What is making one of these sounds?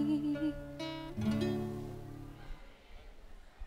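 A woman sings through loudspeakers in a large hall, then stops.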